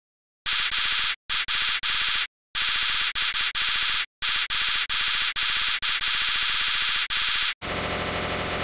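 Rapid high electronic blips chatter in quick bursts.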